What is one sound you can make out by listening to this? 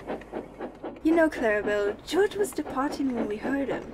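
A woman speaks with animation, close up.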